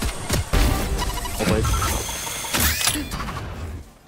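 Gunshots crack rapidly from a game.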